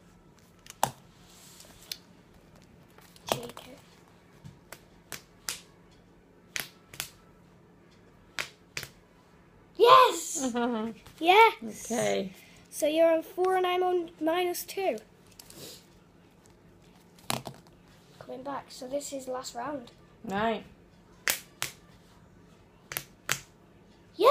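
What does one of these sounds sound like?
Hands tap and click close by.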